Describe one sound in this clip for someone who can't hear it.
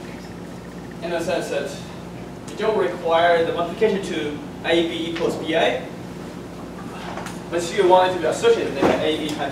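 A young man lectures calmly, heard through a microphone in a room that echoes slightly.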